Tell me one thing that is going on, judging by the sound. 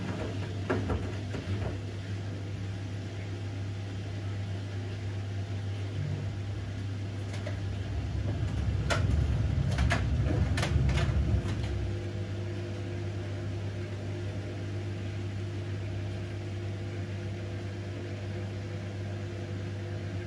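Water and laundry slosh inside a washing machine drum.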